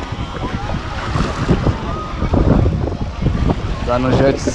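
Bare feet splash through shallow water.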